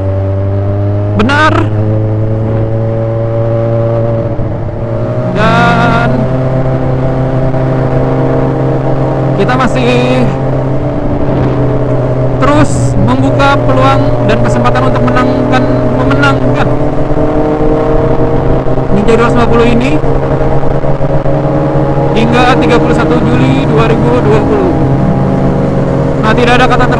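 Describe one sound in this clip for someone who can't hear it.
A motorcycle engine hums steadily up close, rising and falling in pitch.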